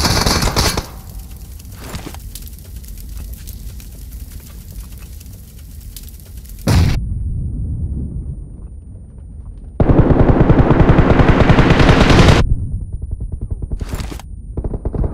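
Flames crackle on a burning car.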